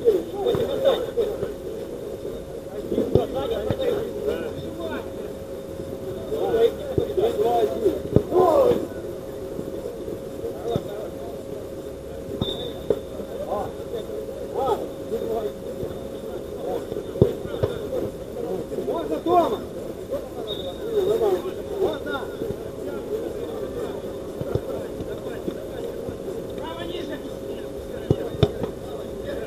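Men shout and call out to each other outdoors at a distance.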